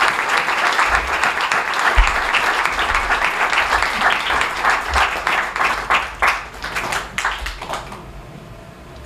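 An audience applauds in a large hall, then the clapping fades away.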